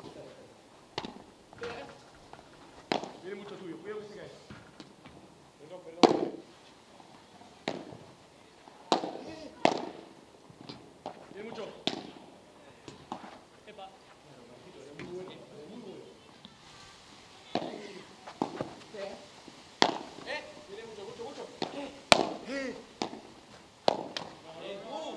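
Rackets strike a ball with sharp hollow pops during a rally.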